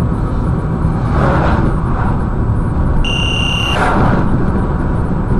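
A truck rushes past close by in the next lane.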